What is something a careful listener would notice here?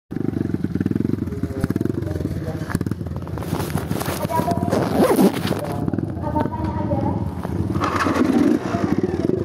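Another dirt bike engine revs nearby.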